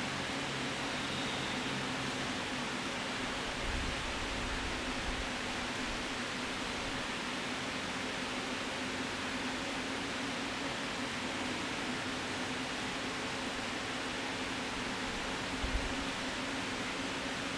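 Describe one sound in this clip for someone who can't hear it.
A crowd of people murmurs softly in an echoing hall.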